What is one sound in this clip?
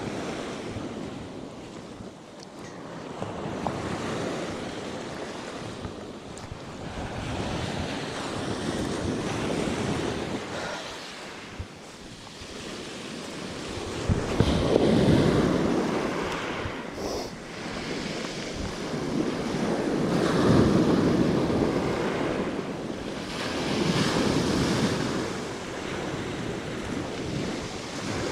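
Waves break and wash over a pebble shore in surges.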